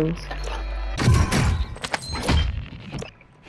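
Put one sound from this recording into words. A rifle fires several quick shots.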